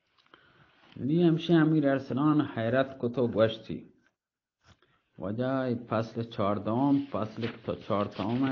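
A man speaks loudly and expressively close to a microphone.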